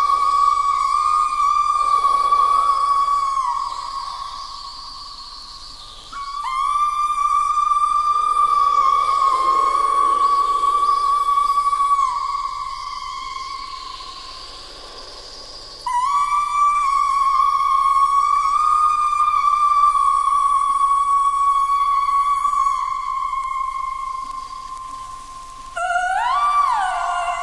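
A woman sings long, high, wavering notes through a microphone, in phrases that swell and fade.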